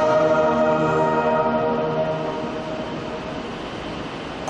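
A wind band plays a sustained chord that fades away.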